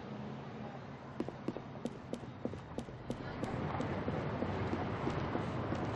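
Footsteps slap quickly on hard ground.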